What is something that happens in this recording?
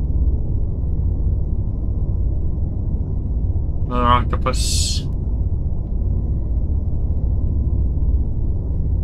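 A spacecraft engine hums with a low, steady rumble.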